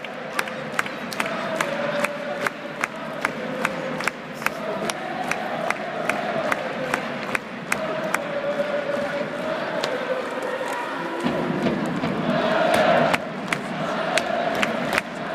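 Drums beat steadily in a rhythm among a stadium crowd.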